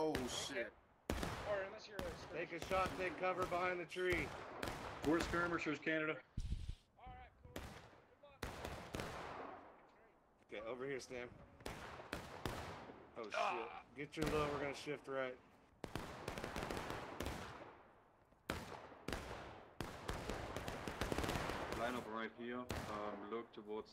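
Musket shots crack in the distance, echoing through woods.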